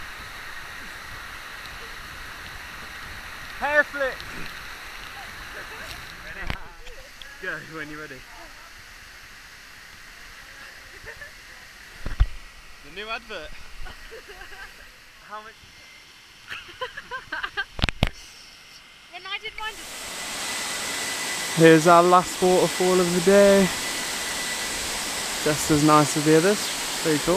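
A waterfall pours and splashes steadily.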